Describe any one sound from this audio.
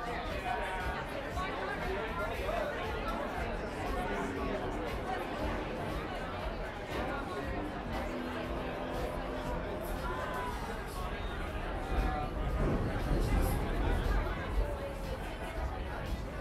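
A crowd of men and women chatter and talk all around, outdoors.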